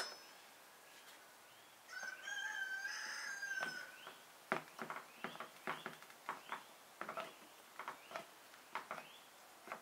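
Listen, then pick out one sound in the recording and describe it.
A fork pricks dough, tapping lightly against a baking tray.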